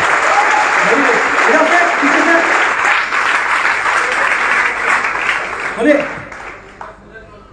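A large crowd claps in a big hall.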